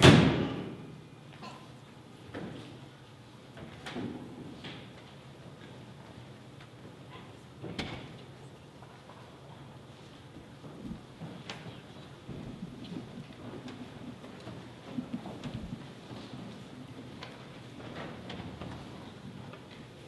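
Footsteps shuffle slowly across a wooden floor in a large room.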